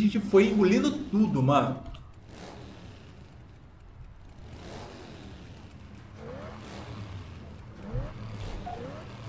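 Motorcycle engines rumble and rev.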